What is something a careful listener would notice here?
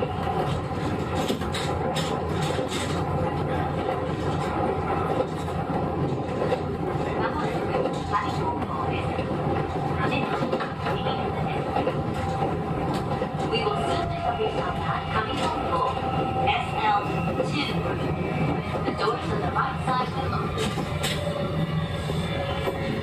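A train rumbles slowly along the tracks.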